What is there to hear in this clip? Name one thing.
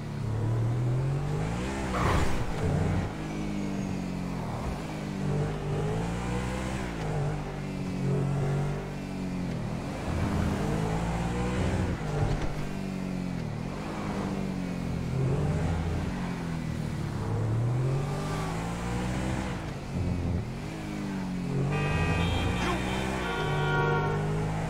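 A sports car engine revs up and down as gears shift.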